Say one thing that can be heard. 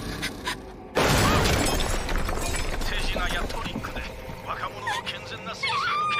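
An elderly man speaks sternly and with animation.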